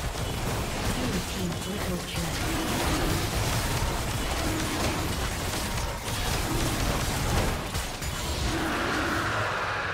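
Spell effects whoosh and crackle during a fight.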